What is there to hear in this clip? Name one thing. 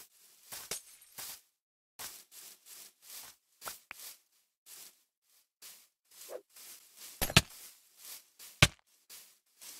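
Footsteps crunch on grass at a steady walking pace.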